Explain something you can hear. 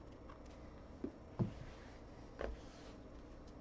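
A stack of cards taps against a table.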